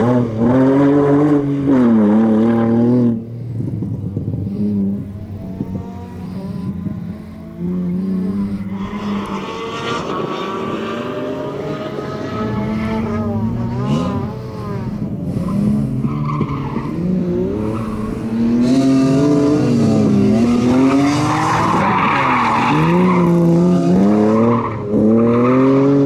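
A car engine revs hard and roars up and down as the car races past.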